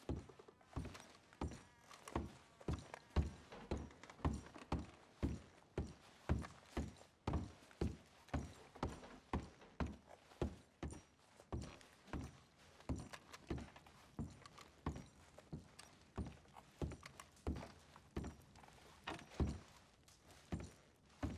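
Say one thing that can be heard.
Heavy boots thud on wooden stairs and floorboards at a steady walking pace.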